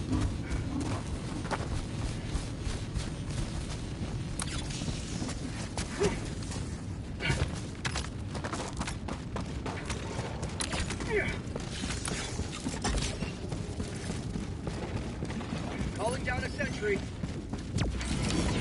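Heavy boots crunch quickly over rocky ground.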